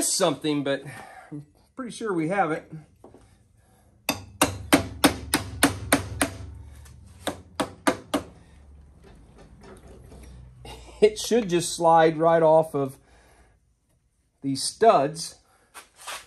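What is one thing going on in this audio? A middle-aged man talks calmly nearby.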